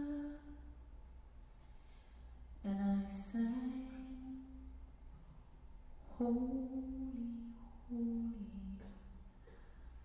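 A young woman sings softly into a microphone, with long held notes.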